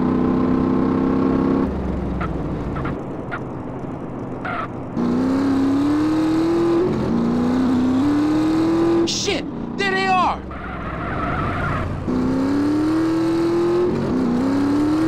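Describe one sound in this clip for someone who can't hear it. A motorcycle engine revs up repeatedly, rising in pitch through the gears.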